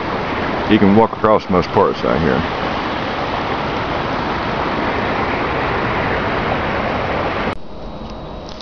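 A shallow river rushes steadily over stones.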